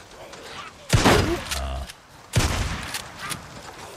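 Gunshots ring out in a game.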